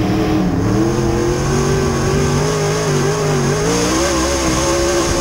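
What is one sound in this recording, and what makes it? Tyres rumble and skid on a dirt track.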